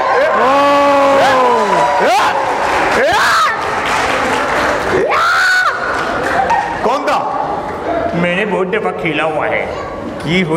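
A large crowd chatters noisily in an echoing hall.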